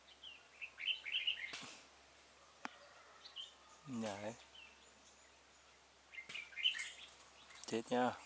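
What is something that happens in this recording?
Small birds chirp in quick high notes.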